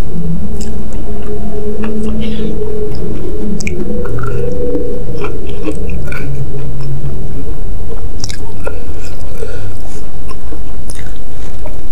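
A woman slurps noodles loudly.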